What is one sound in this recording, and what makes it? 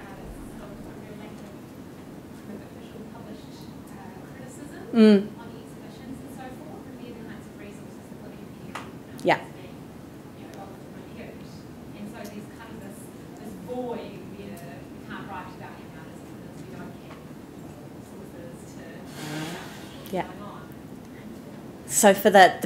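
A woman speaks at a distance to a roomful of people.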